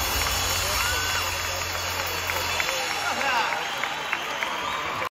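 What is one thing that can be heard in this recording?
A live rock band plays loudly in a large echoing hall.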